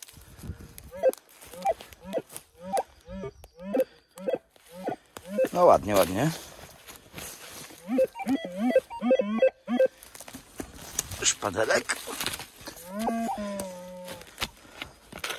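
A metal detector gives short rising electronic chirps, over and over.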